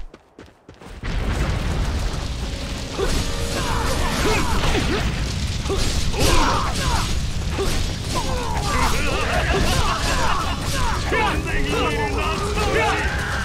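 Blades clash and slash in a fierce fight.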